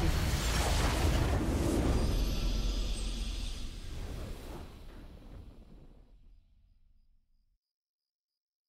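A triumphant game victory fanfare plays and slowly fades away.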